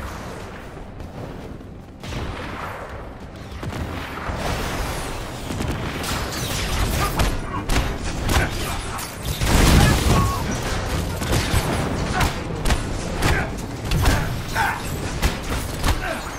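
Jet thrusters roar steadily.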